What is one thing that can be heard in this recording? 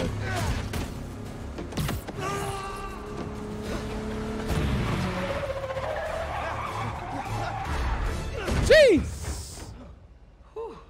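A car engine roars and revs loudly.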